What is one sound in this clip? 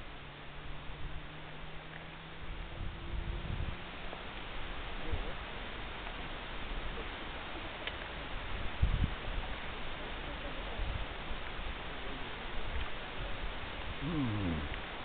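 Wind blows and buffets outdoors.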